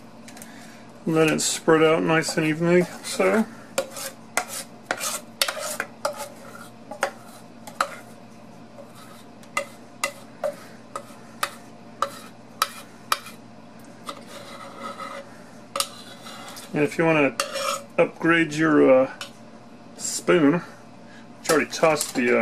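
A metal spoon scrapes and taps against a metal bowl.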